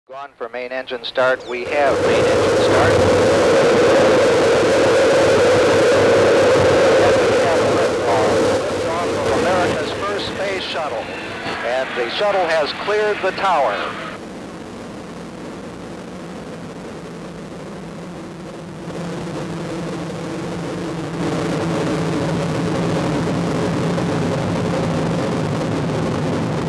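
A rocket engine roars with a deep, steady rumble.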